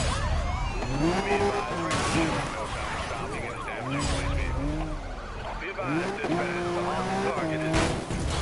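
A sports car engine roars and revs at high speed.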